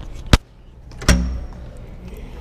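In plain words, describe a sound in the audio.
A glass door is pushed open with a thud.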